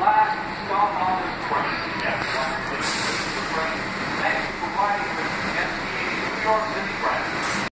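A subway train rumbles and rattles along the tracks.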